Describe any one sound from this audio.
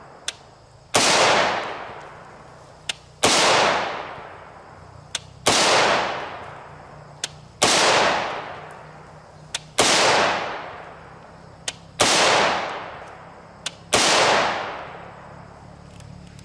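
A rifle fires single loud shots outdoors, each echoing away.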